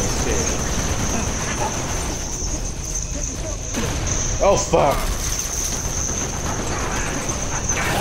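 Energy weapons zap and whine.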